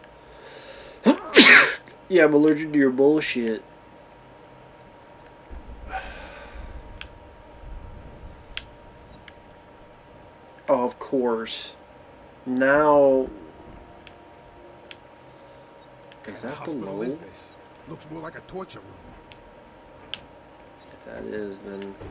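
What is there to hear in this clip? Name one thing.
A man talks casually into a nearby microphone, in short bursts.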